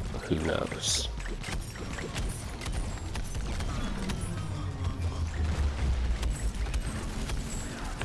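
A cartoon blaster weapon fires in rapid bursts.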